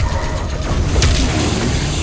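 A heavy blade slashes into flesh with a wet crunch.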